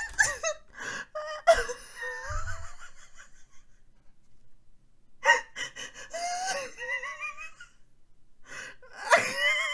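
A young woman squeals and laughs excitedly close to a microphone.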